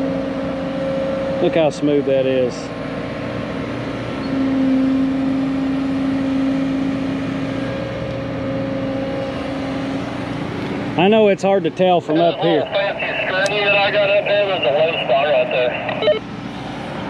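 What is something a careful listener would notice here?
An excavator engine runs with a steady low hum.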